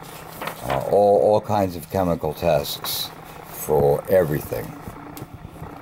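Paper pages flutter as a book's pages are flipped quickly.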